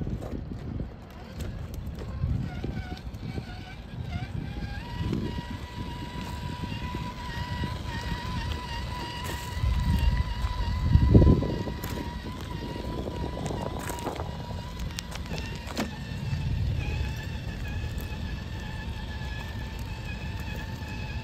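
A small electric motor whines steadily.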